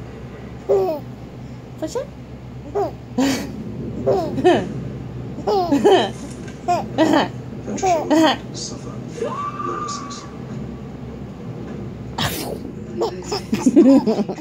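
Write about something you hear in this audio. A baby laughs and squeals up close in bursts.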